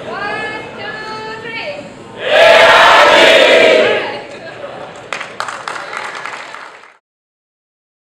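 A large crowd cheers and shouts loudly in a big hall.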